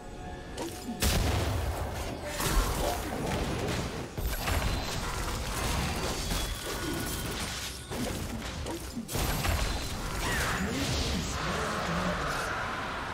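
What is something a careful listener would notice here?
Magic spells whoosh and crash in a fast fight.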